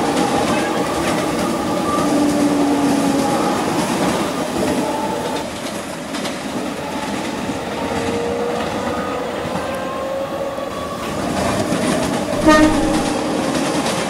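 An electric commuter train runs along the track at speed.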